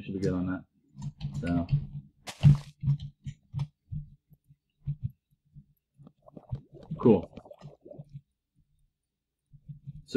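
Soft digging thuds repeat at a quick, uneven pace.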